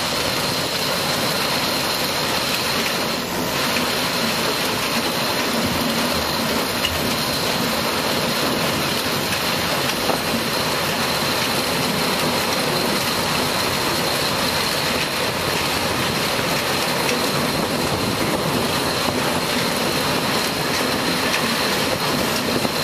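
A harvester engine roars steadily close by.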